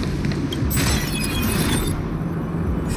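A bright magical chime shimmers.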